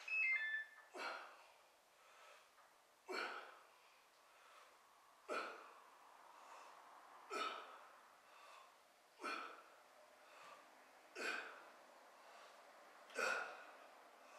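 A middle-aged man breathes out sharply in a steady rhythm.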